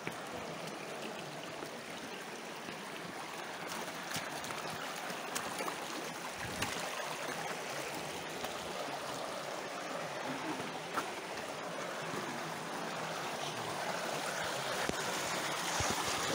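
Footsteps splash and crunch on wet gravel and stone.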